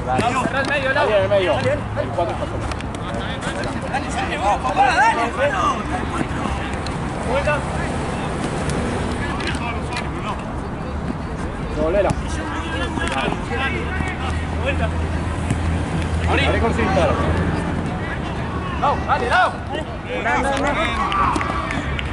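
A football is kicked on artificial turf.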